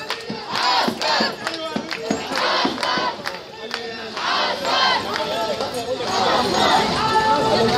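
A large crowd of women chants loudly outdoors.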